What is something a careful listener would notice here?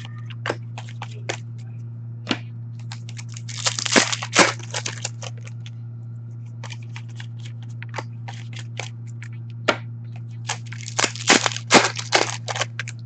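Cards and plastic wrappers rustle and crinkle close by as hands sort through them.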